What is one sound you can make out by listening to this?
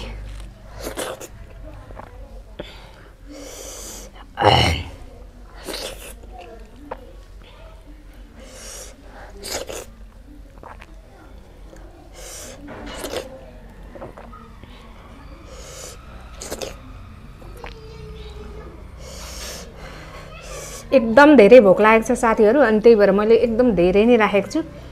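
Food squelches and rustles under fingers.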